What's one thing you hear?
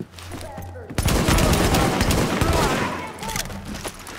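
An assault rifle fires rapid shots.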